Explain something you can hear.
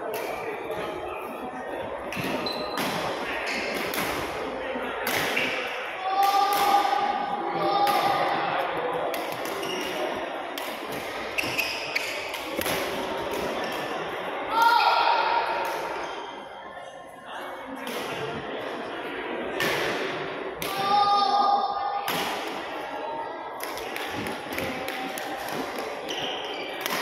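Children's voices chatter and call out in a large echoing hall.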